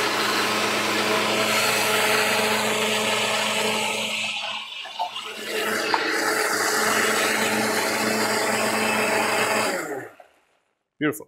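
A blender whirs loudly, pausing briefly before starting again.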